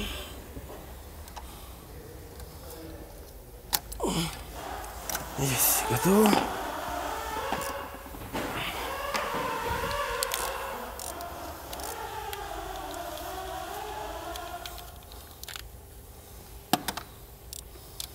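A metal tool clicks and knocks against engine parts.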